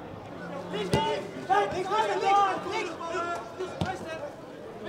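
A football is kicked on grass.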